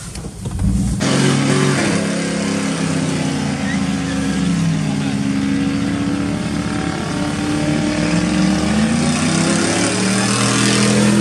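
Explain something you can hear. A truck engine roars loudly and steadily.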